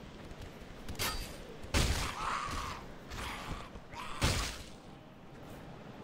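A sword swishes and strikes with sharp blows.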